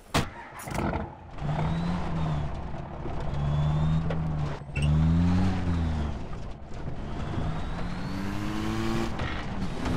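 A truck engine starts and rumbles, revving up and down.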